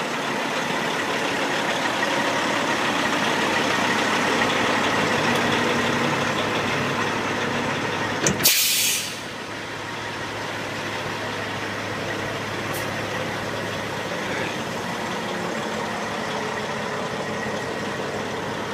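A truck's hydraulic pump whines and hums steadily as a dump bed rises.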